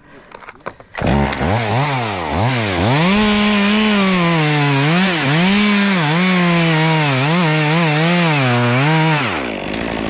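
A chainsaw roars close by, revving up and down as it cuts through wood.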